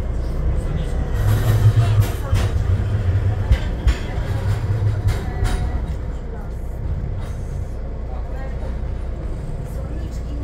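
A tram rattles past close by on its rails.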